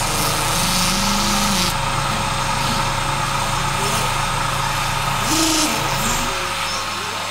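A toddler hums and babbles into a tube up close, making a muffled drone.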